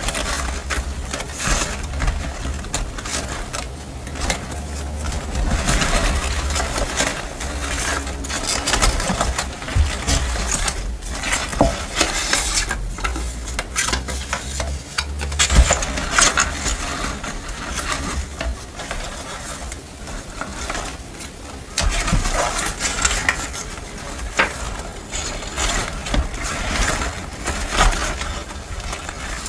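Paper scraps rustle and crinkle as hands sift through them close by.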